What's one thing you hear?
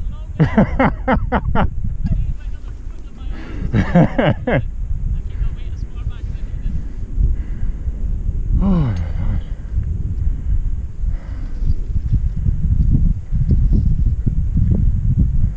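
Wind buffets the microphone outdoors with a low rumble.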